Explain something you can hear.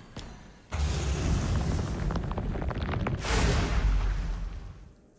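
Video game sound effects whoosh and clatter.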